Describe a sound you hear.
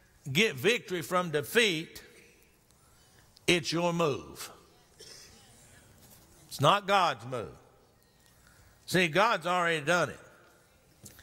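A middle-aged man preaches with emphasis into a microphone, in bursts with pauses.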